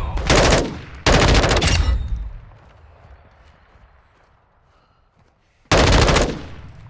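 A rifle fires loud bursts of shots, with rumbling echoes.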